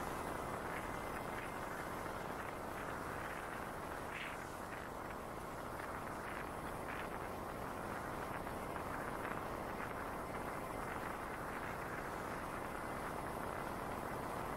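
Tyres roll steadily over a paved road with a low rumble.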